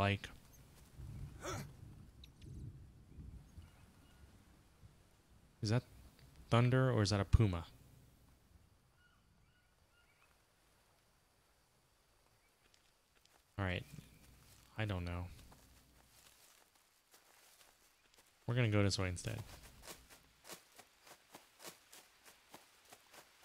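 Footsteps rustle through dense leaves and undergrowth.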